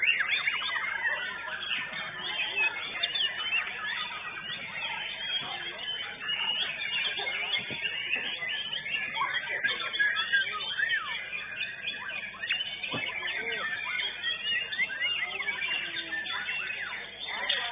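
Many songbirds chirp and twitter loudly all around.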